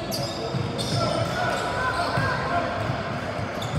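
Young players call out to each other.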